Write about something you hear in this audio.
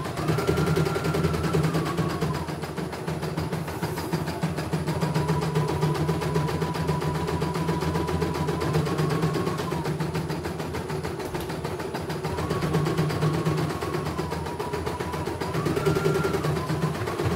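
An embroidery machine hums and stitches rapidly, its pitch rising and falling as the speed changes.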